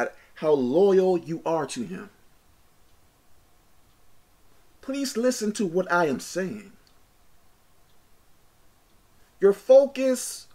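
A man speaks with animation close to a microphone, in short bursts with pauses.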